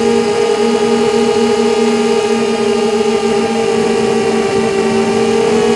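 Drone motors whine steadily at a high, even pitch.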